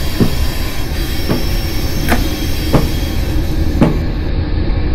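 Train wheels click over rail joints at a steady pace.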